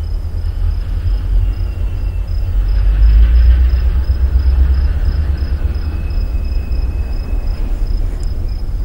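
A train engine rumbles low and steady.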